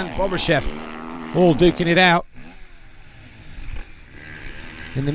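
Motocross motorcycle engines rev loudly and rise and fall in pitch.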